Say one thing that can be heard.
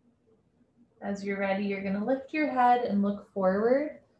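A woman speaks slowly and calmly, close by.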